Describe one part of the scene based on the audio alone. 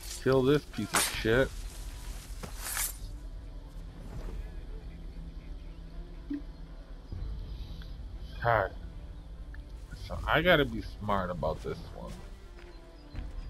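Footsteps crunch through dry brush and dirt.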